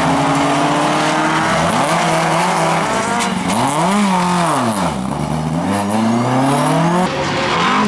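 A racing car engine revs up and down sharply.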